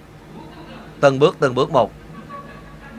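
A man sings out loudly through loudspeakers.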